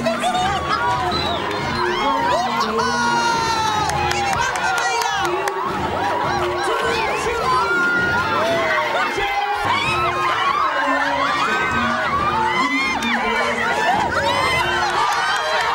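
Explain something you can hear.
Women clap their hands.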